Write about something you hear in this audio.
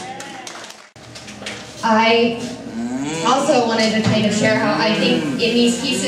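A woman reads out into a microphone, heard through a loudspeaker.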